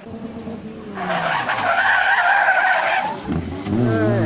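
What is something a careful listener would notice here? Tyres skid and scrape on a rough road.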